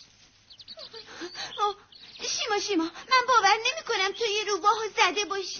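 Several high cartoon voices chatter excitedly.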